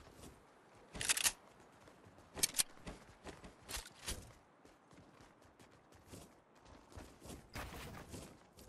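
A rifle fires single sharp shots.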